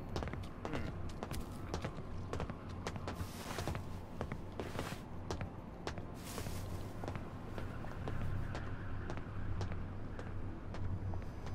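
Footsteps tap on stone paving.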